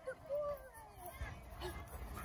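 A woman talks playfully to a dog, close by.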